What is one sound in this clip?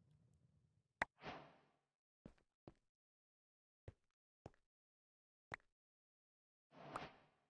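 A pickaxe strikes stone in sharp taps.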